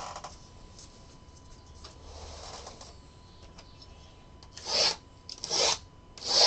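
Cardboard boxes scrape and slide against each other.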